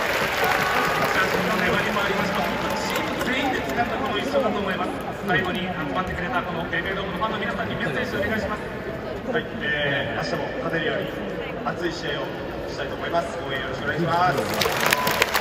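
A young man speaks calmly through loudspeakers in a large echoing stadium.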